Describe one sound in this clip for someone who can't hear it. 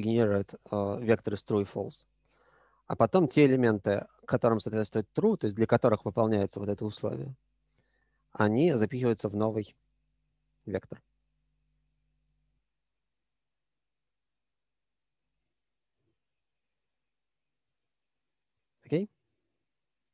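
A young man speaks calmly through a computer microphone, as on an online call.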